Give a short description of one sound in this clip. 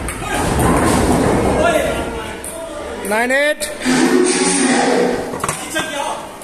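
A table tennis ball clicks off paddles and the table.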